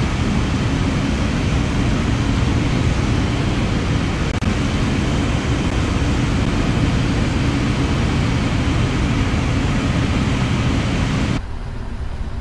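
Jet engines roar loudly outside an airliner as it taxis.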